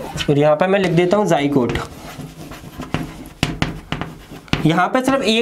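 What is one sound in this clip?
A young man speaks clearly and calmly, close by.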